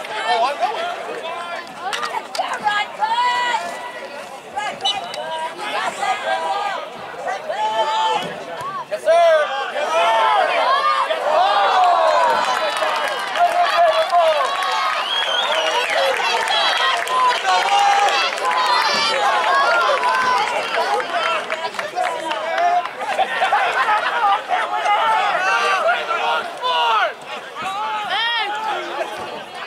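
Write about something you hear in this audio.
A crowd of spectators talks and cheers nearby outdoors.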